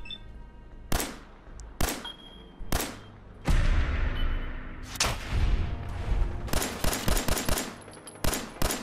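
Gunshots crack one after another, with a short echo after each.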